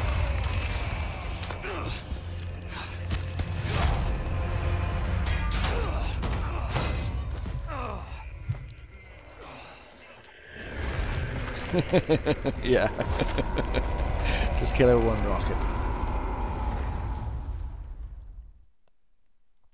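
Deep rumbling and crashing sounds boom loudly.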